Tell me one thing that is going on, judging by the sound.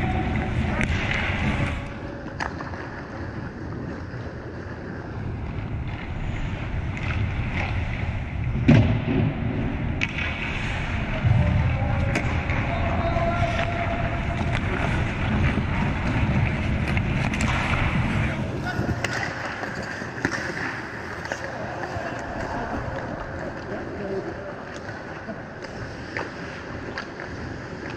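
Skate blades scrape and hiss on ice in a large echoing rink.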